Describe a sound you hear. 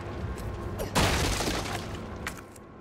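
A wooden crate breaks apart with a loud crash.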